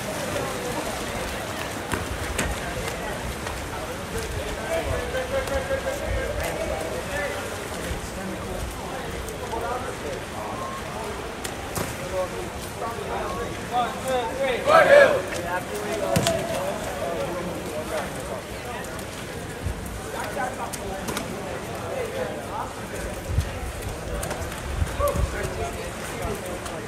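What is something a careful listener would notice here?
Young men talk and call out nearby, outdoors.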